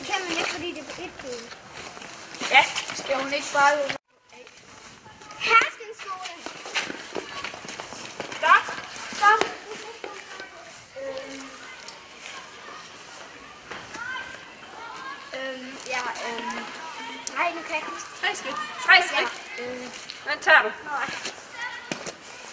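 Children talk and shout excitedly outdoors.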